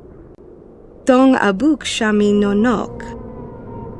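A young woman speaks softly and slowly.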